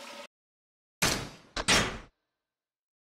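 Short electronic menu chimes sound twice in quick succession.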